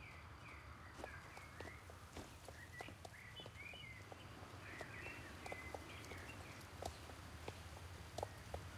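Footsteps thud softly on dirt.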